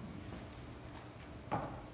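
Paper rustles as a man sets papers down.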